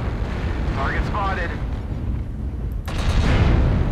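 A loud explosion booms close by.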